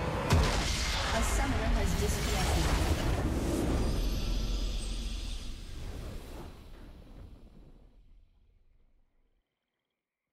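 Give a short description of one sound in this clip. A triumphant game fanfare plays loudly, then slowly fades away.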